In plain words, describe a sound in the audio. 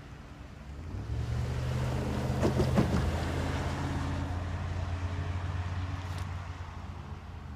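A car drives over a railway crossing close by.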